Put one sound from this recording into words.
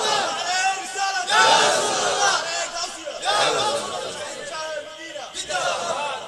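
A man preaches with animation through a microphone and loudspeakers.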